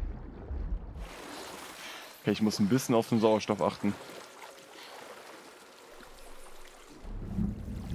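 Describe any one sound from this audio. Water splashes as a swimmer strokes along the surface.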